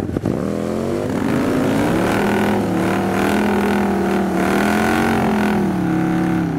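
A motorcycle engine roars loudly at high revs, close by.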